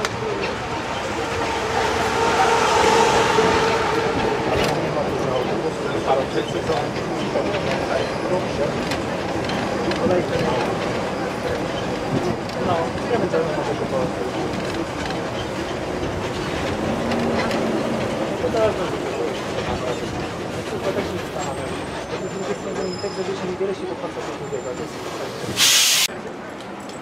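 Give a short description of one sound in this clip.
A vehicle engine hums and rumbles steadily.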